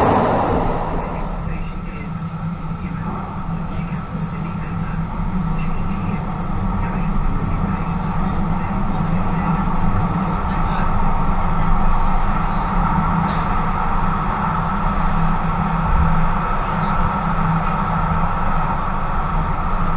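A train rumbles steadily along its rails.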